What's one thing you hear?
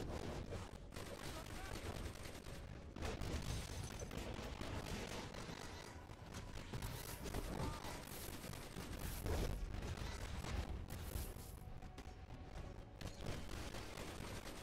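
Punches and hits thud rapidly.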